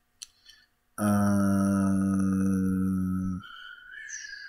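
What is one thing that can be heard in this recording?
A man hums a long, steady note.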